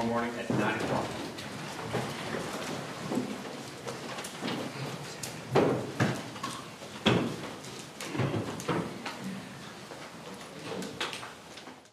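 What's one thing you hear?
A woman speaks steadily and firmly through a microphone, in a slightly echoing room.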